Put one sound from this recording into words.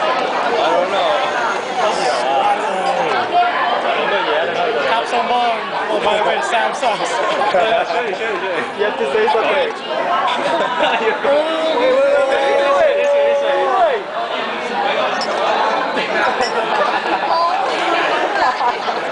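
Many voices chatter and talk over each other in a busy, echoing room.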